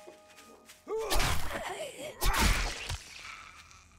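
A blade swooshes through the air and strikes with a thud.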